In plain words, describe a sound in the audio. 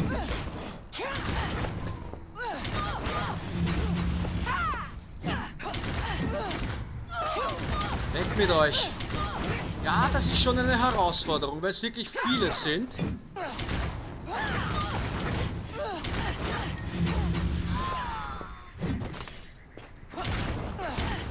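Magic blasts and weapon strikes crackle and thud in a fight.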